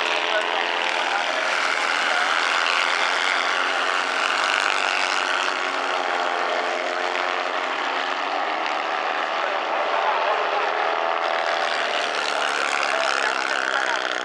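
Tyres skid and crunch on loose dirt.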